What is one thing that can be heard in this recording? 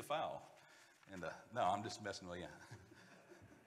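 A man speaks calmly through a microphone in an echoing hall.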